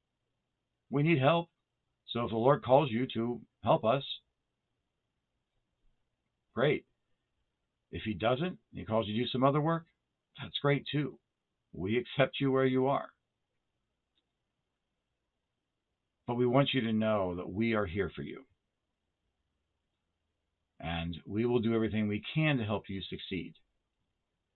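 A middle-aged man speaks calmly, in short phrases with pauses, heard through a microphone.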